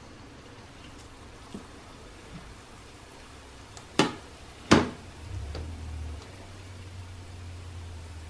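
Hot oil sizzles and bubbles softly in a pan.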